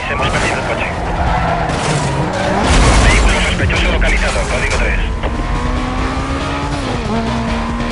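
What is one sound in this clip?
A car engine roars at high revs and shifts gears.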